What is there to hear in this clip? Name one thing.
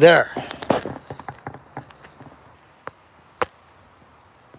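Split wood pieces clatter onto the ground.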